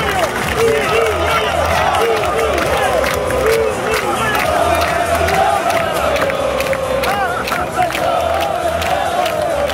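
A fan close by claps his hands.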